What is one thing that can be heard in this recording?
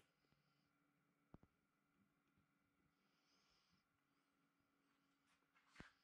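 A glue bottle squelches as it is squeezed.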